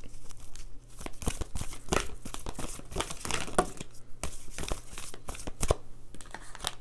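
Playing cards shuffle and riffle with quick crisp flicks.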